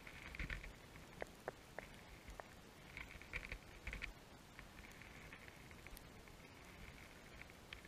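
Faint crackling and clicking fill the muffled underwater surroundings.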